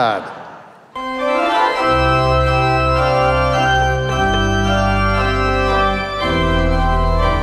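An organ plays loudly in a large echoing hall.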